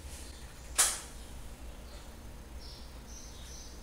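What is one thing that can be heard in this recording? Dishes clatter in a sink.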